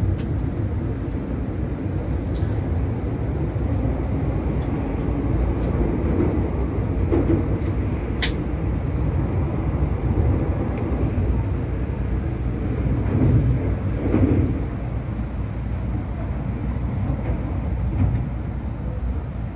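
A high-speed train rushes past close by with a loud, steady rumble and whoosh.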